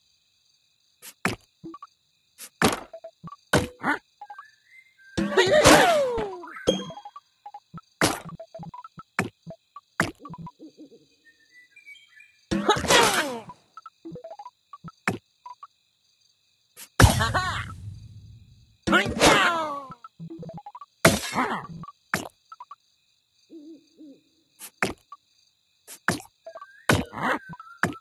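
Game chimes and pops ring out as pieces match and burst.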